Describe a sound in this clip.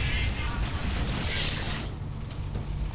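An energy weapon blasts with a loud crackling roar.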